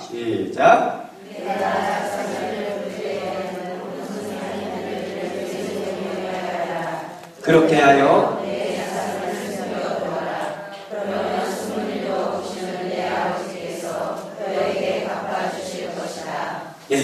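A middle-aged man speaks calmly through a microphone in a large echoing room.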